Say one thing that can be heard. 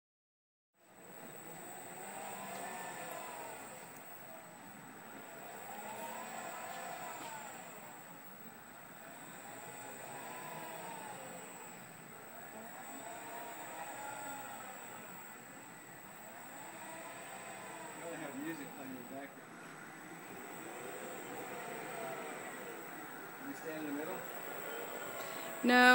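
Electric servo motors whine, rising and falling in pitch as a motion platform tilts back and forth.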